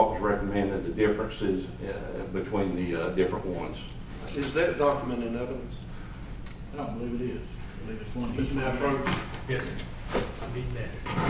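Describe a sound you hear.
A man speaks calmly into a microphone, in a room with a slight echo.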